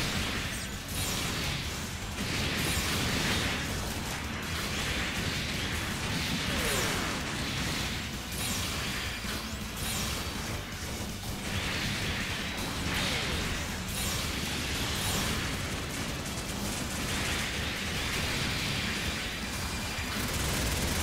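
Beam shots zap and blast in quick bursts.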